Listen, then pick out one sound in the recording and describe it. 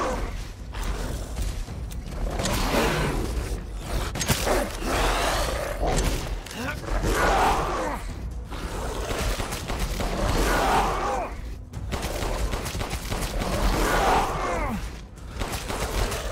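Gunshots bang in quick bursts.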